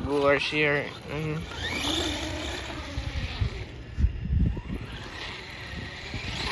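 A small electric motor whines as a toy car drives.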